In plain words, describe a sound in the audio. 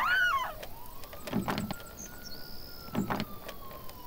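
A lock pick clicks and scrapes inside a metal lock.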